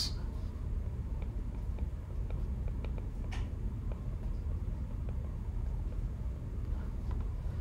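A stylus taps and scratches on a glass tablet.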